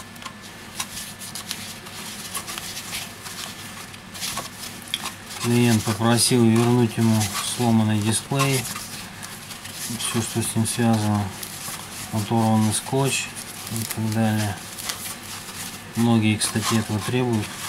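A soft foam sheet rustles and crinkles as it is unwrapped.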